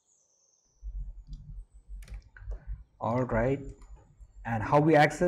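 Keys click on a laptop keyboard.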